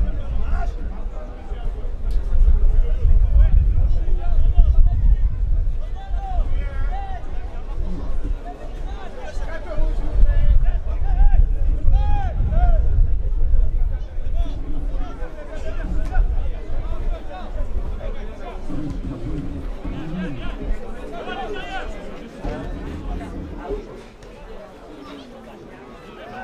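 A crowd of spectators murmurs and cheers outdoors.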